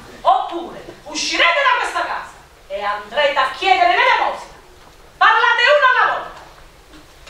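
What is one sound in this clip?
A woman speaks with feeling on a stage in a hall.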